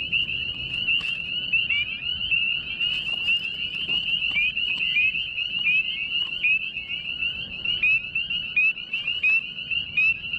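Frogs chirp rapidly and shrilly in a dense, steady chorus close by.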